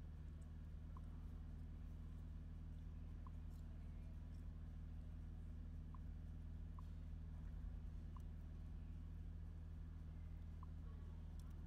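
A finger taps a car touchscreen, with short soft ticks.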